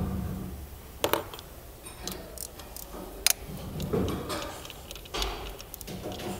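Metal tools clink and click against engine parts.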